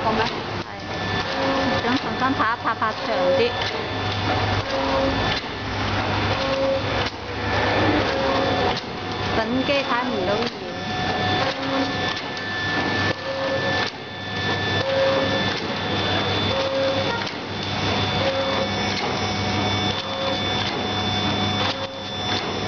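A packaging machine hums and clatters in a steady repeating rhythm.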